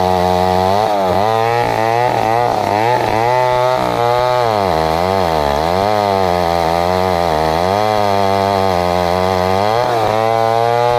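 A chainsaw engine roars loudly, rising and falling as it cuts through a log.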